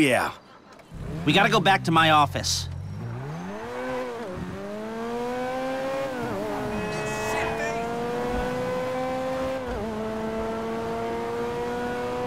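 A car engine starts and revs, rising in pitch through gear changes as the car drives off.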